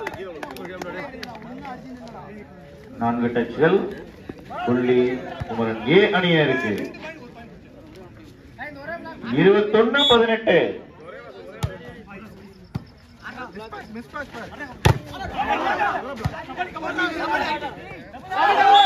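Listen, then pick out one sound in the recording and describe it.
Young men shout and call out loudly outdoors.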